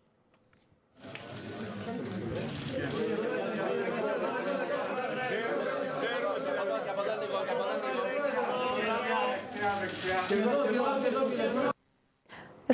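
A crowd murmurs and chatters in a room.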